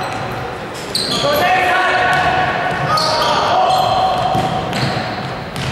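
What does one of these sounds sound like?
Young men shout to each other across the hall.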